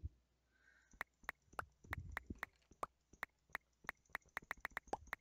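A block is struck with quick, evenly repeated taps.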